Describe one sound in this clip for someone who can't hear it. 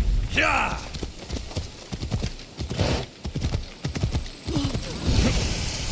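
A horse's hooves clop on a dirt path.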